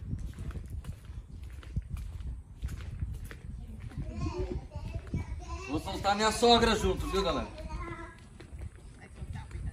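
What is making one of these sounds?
Footsteps thud on a paved path outdoors.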